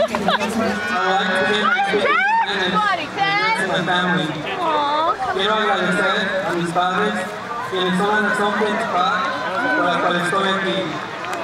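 A young man speaks through a microphone and loudspeakers outdoors.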